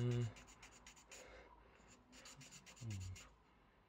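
Sandpaper rubs against a thin rod in quick, short strokes.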